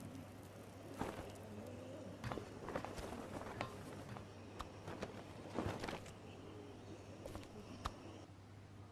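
Wooden beams creak and knock.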